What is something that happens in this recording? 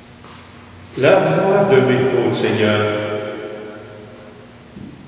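An elderly man sings a long, drawn-out note in a reverberant room.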